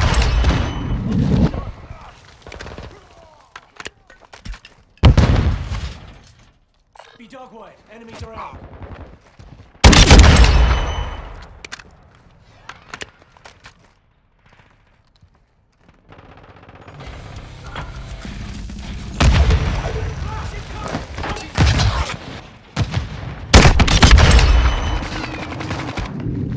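Automatic rifle fire crackles in bursts in a video game.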